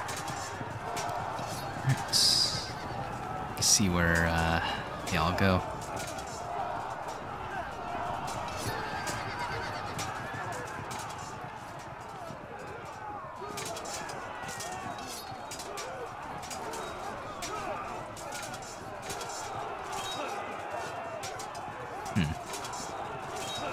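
A crowd of soldiers shouts and clamours in battle.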